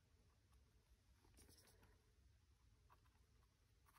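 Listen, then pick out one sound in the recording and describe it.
A palette knife scrapes softly across textured paper.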